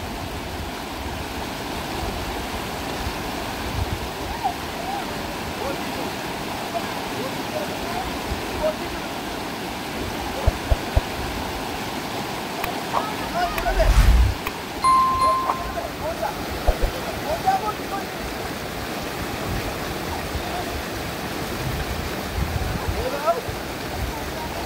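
A shallow river rushes steadily over rocks.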